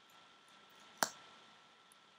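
A plastic cap pops off with a sharp click.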